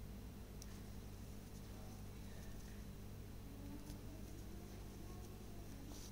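A crochet hook softly rustles through yarn.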